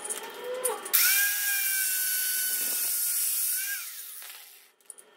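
An angle grinder whines loudly as it cuts metal.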